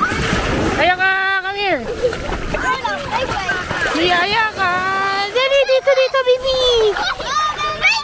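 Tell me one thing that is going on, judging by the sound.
Small dogs paddle and splash in the water.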